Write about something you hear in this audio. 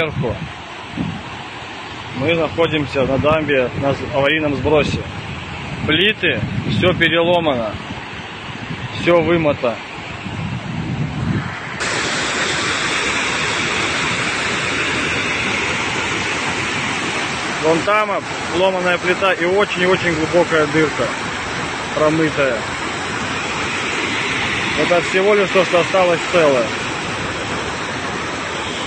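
Muddy floodwater rushes and roars over a spillway.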